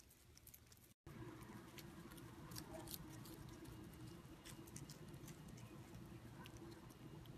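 A cat crunches crisp leaves, close up.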